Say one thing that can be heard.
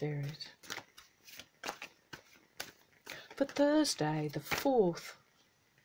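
A deck of cards is shuffled by hand, the cards flicking and rustling.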